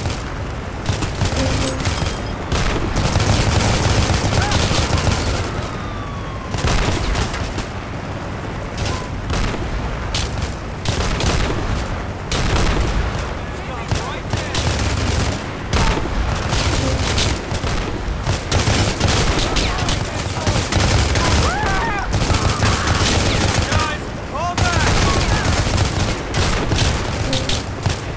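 Rifle gunfire bursts in rapid cracks.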